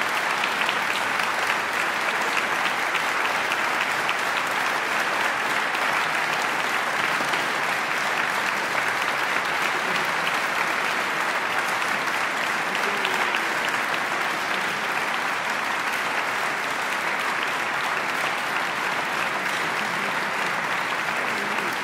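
A large audience applauds steadily in a big echoing hall.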